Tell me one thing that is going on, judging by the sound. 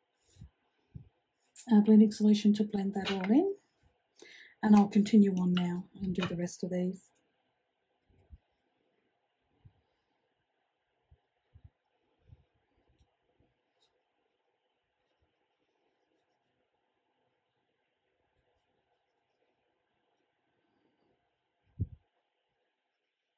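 A paintbrush strokes softly on paper.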